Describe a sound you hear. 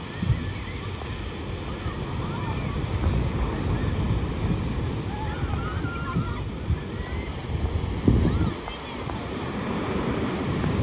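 People on the beach shout and call out in the distance.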